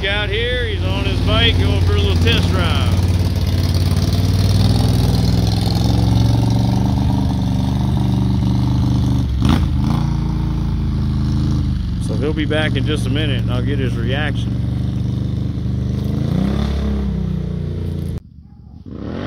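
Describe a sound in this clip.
A four-wheeler engine idles and revs loudly close by.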